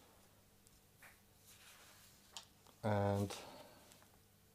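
Paper rustles and slides softly.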